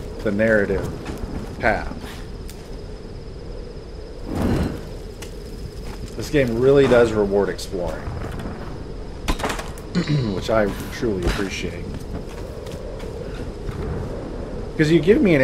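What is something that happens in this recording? A torch flame crackles and flickers.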